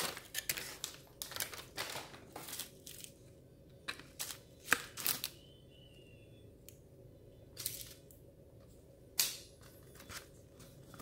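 A plastic tray crackles as fingers handle it.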